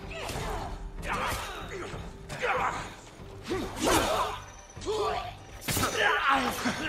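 Swords clash and ring sharply several times.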